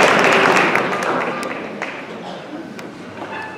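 A concert band plays a loud chord that rings out and fades in a large hall.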